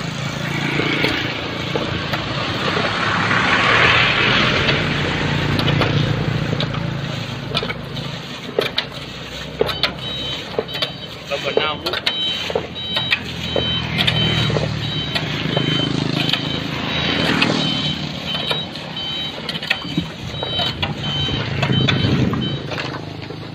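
Shovels scrape and knock on wet asphalt.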